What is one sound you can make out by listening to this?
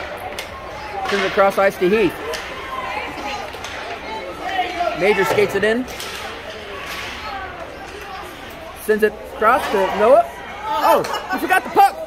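Children call out and chatter nearby in an echoing hall.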